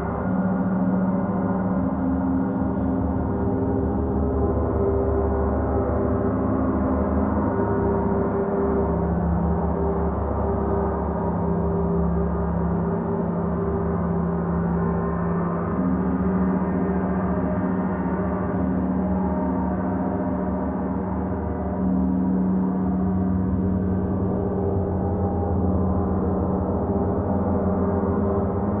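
Large gongs hum and shimmer in a steady, swelling drone.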